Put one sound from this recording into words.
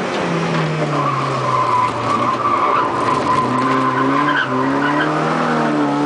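Wind and road noise rush around the car.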